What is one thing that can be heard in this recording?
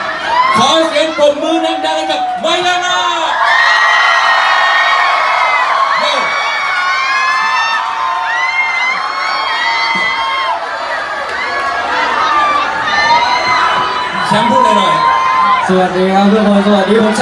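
A crowd cheers and sings along in a lively room.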